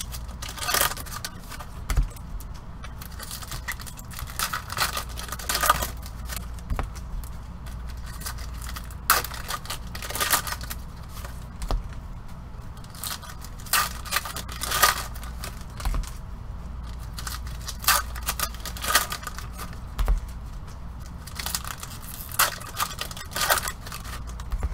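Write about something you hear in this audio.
Foil wrappers tear open with sharp crackles.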